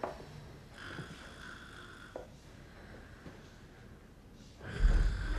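Slow footsteps thud softly across a floor.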